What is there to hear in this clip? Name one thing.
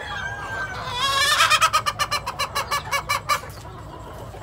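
A rooster clucks rapidly.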